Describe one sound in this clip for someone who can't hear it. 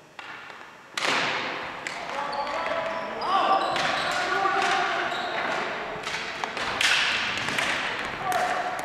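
Men shout to each other in an echoing gym.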